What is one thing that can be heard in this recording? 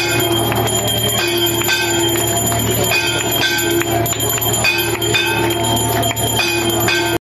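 A crowd of people clap their hands in rhythm.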